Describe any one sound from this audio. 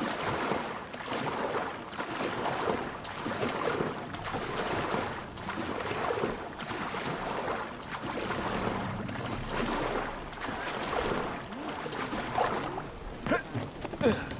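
Water splashes as a swimmer strokes through choppy sea.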